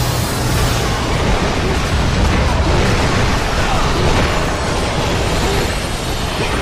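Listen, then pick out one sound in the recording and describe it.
Heavy magic blasts rumble and crackle.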